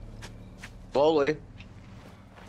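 A young man speaks loudly and briefly into a close microphone.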